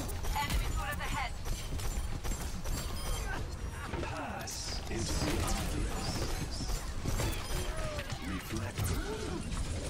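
Game weapons fire in quick bursts.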